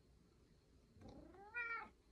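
A domestic cat meows.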